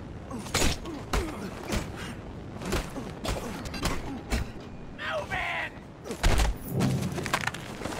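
A man grunts and shouts while fighting.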